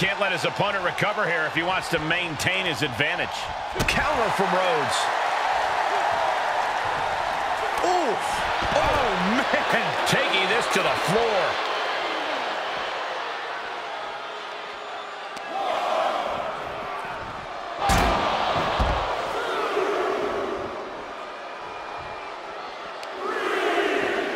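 A large arena crowd cheers and roars.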